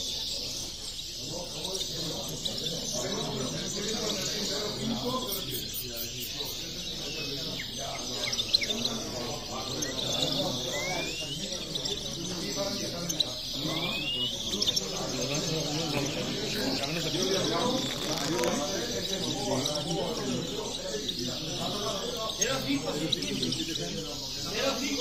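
Caged songbirds chirp and trill.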